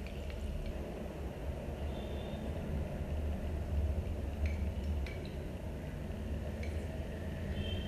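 A young woman slurps soup from a bowl.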